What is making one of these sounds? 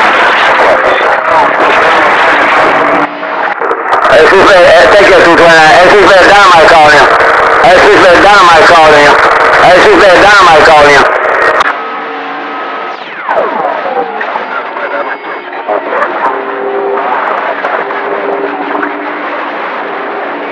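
A radio receiver hisses with static and warbling, distorted signals from its loudspeaker.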